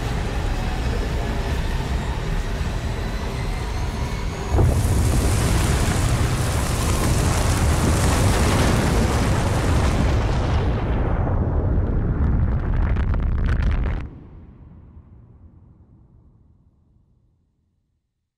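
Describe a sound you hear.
A strong wind roars and howls, then fades away.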